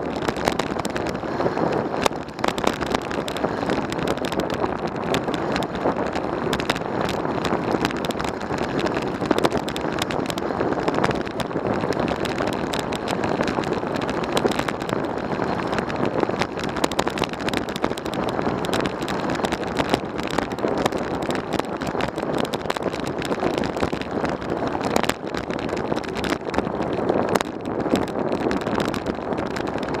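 Wind rushes loudly past a moving bike rider.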